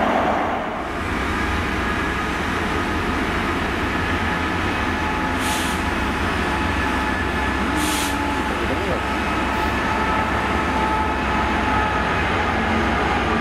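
A diesel locomotive's engine drones as it approaches slowly.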